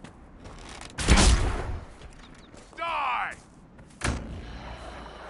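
A magic spell bursts with a loud whoosh.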